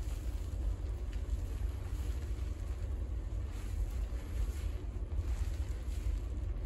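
Fingers scrub a lathered head of hair with soft, wet squishing.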